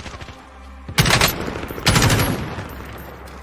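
A rifle fires a few loud shots.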